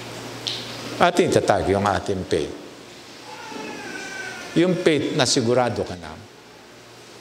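An elderly man speaks calmly through a microphone in a reverberant hall.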